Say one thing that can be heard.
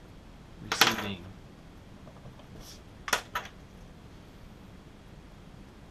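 A pen clicks down onto a table.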